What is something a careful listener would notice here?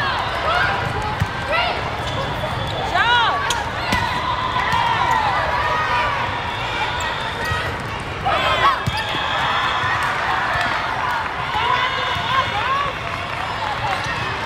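A crowd of players and spectators chatters and calls out in a large echoing hall.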